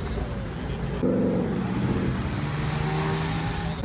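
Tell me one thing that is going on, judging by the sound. A convertible sports car drives past.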